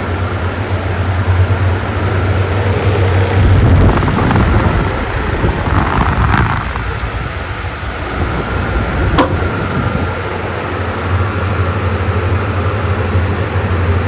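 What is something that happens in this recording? Electric fans hum steadily.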